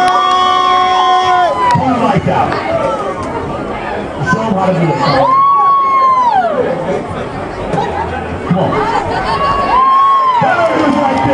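A crowd chatters and cheers loudly in a large, echoing hall.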